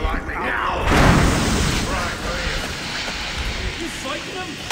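A smoke bomb bursts with a loud hiss.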